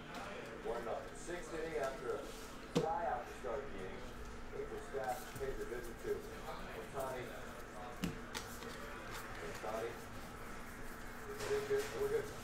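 Cards shuffle and rustle in hands.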